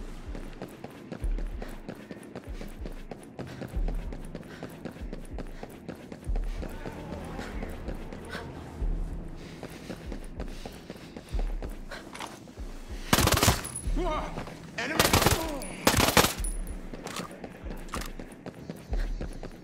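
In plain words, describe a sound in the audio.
Boots run on pavement.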